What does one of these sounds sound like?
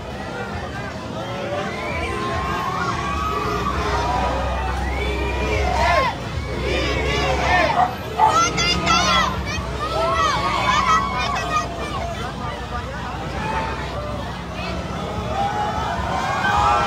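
A large crowd of men and women cheers and shouts loudly outdoors.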